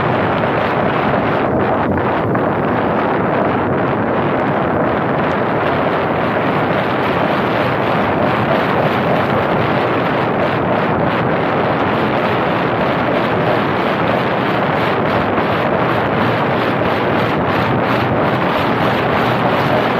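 Car tyres roll on asphalt.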